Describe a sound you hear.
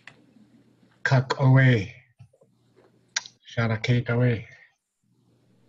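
An elderly man speaks close to a microphone in short bursts.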